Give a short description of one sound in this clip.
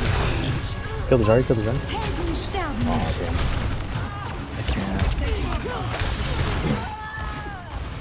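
An energy beam weapon hums and crackles during a fight.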